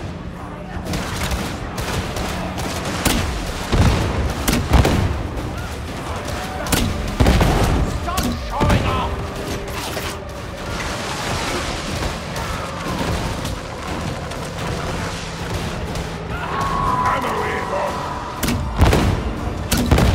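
Guns fire in rapid bursts with loud bangs.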